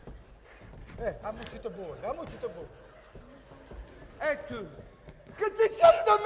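A man speaks loudly and theatrically in a large hall.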